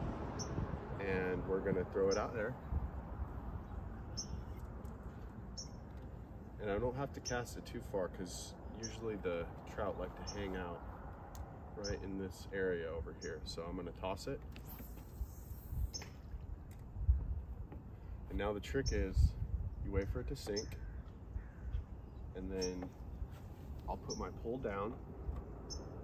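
A man talks calmly and close by, outdoors.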